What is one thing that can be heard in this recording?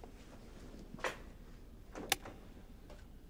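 A button on a cassette radio clicks.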